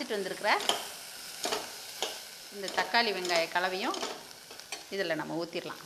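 A metal ladle stirs chopped vegetables in a steel pot.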